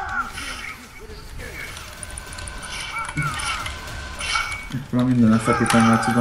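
Blades clash and strike with sharp hits.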